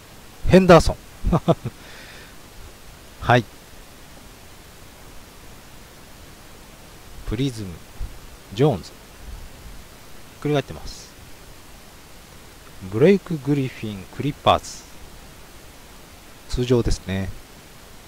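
A young man speaks in short bursts into a close microphone.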